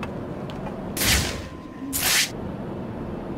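A cape whooshes through the air in two quick rushes.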